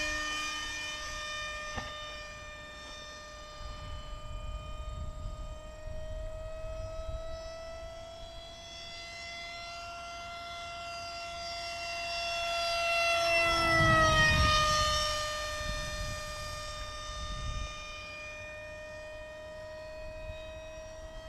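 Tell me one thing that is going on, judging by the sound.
A model jet engine whines steadily, rising in pitch as the plane passes close by at speed and then dropping.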